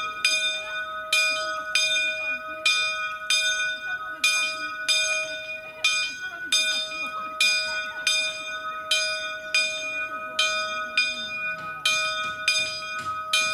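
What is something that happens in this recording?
A swinging church bell rings loudly in quick, repeated strokes, each tone ringing on between them.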